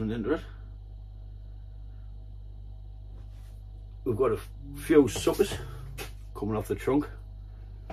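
A man talks calmly close by, in short bursts.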